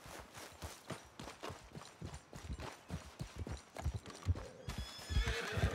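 Footsteps crunch over gravel and grass.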